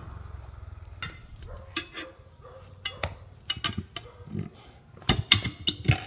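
Metal tyre levers clank against a steel wheel rim.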